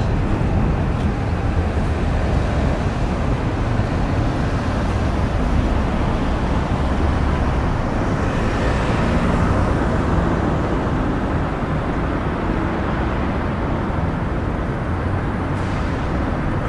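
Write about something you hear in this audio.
A busy city street hums with steady traffic noise.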